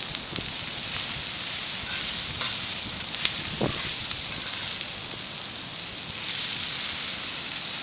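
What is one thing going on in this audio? A metal spatula scrapes across a griddle.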